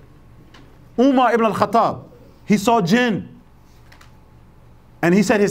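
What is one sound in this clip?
A middle-aged man speaks calmly and clearly into a nearby microphone, pausing between phrases.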